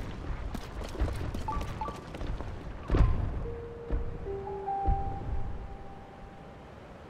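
Hands and feet scrape and thud on a rock face during a climb.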